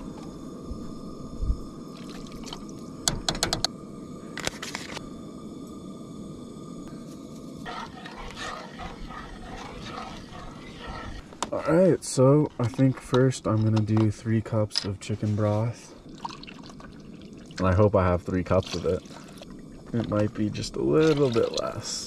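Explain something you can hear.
A camp stove burner hisses steadily.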